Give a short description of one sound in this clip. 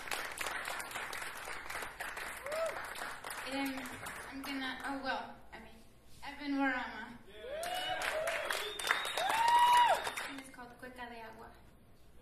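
A young woman sings into a microphone in a large echoing hall.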